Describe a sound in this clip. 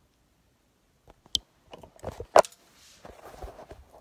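Knocks and bumps sound as the recording device is handled up close.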